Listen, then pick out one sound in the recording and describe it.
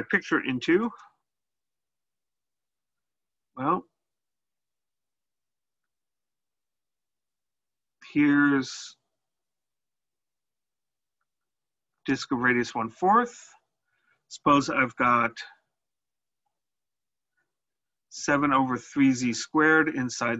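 A man speaks calmly through a close microphone, in short bursts with pauses.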